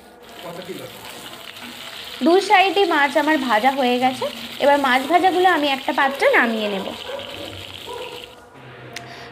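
Fish steaks sizzle as they fry in hot oil.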